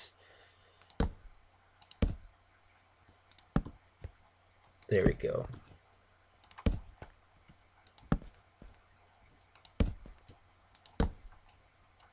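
Wooden blocks are set down with short, dull knocks.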